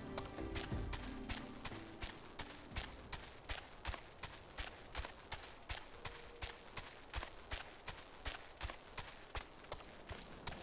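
A large bird's feet thud rapidly and evenly as it runs.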